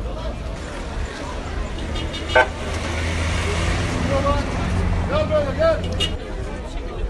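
An ambulance drives slowly past with its engine running.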